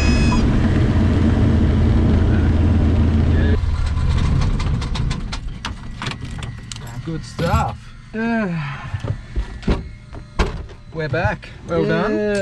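A small plane's engine drones loudly, then drops to a quieter rumbling idle.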